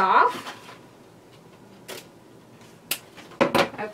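Scissors snip through ribbon.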